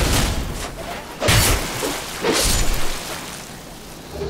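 Metal weapons clash and strike with heavy thuds.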